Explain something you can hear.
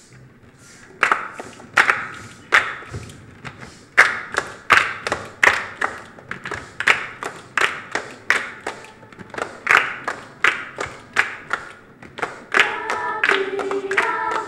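A group of children clap their hands in a steady rhythm.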